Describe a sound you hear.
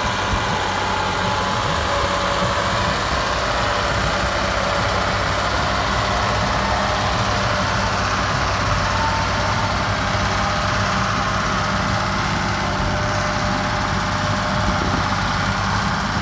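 A diesel farm tractor labours under heavy load, its engine chugging.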